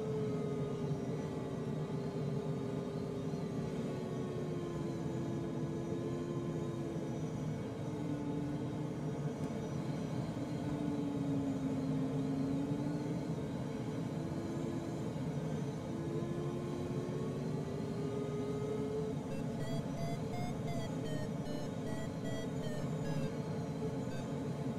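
Wind rushes steadily past a glider's canopy.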